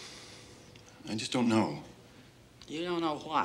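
A man speaks earnestly nearby.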